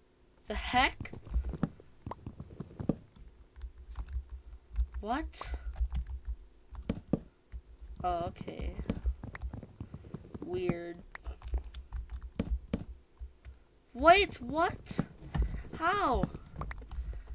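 Wooden blocks are struck with quick, dull knocks and break apart.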